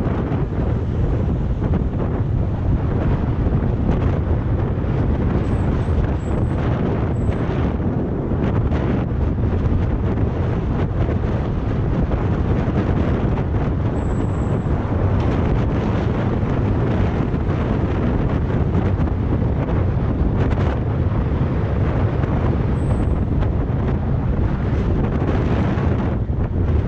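Bicycle tyres roll and rattle over rough asphalt.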